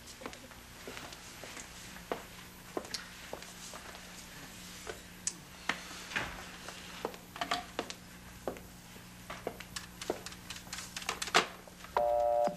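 Heels click on a hard floor.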